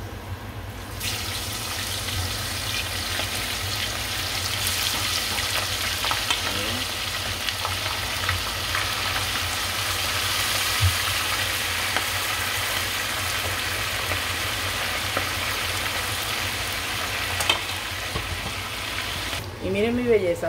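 Meat sizzles loudly as it fries in hot oil.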